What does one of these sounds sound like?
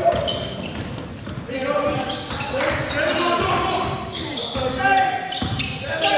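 Men shout and call out to each other across a large echoing hall.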